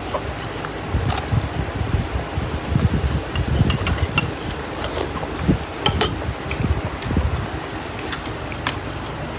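A man chews food noisily close to the microphone.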